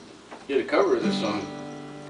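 An acoustic guitar is strummed briefly.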